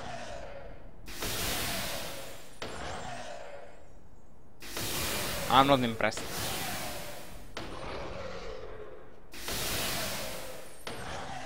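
Magic spells burst with short hissing whooshes.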